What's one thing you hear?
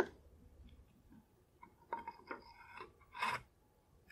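Metal parts clink against each other.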